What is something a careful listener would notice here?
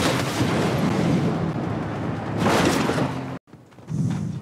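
A video game vehicle engine roars as it drives.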